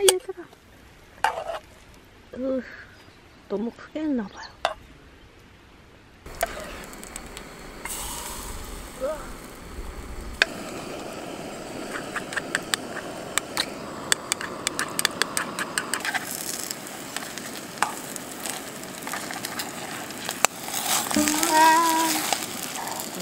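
Metal tongs scrape and tap against a pan.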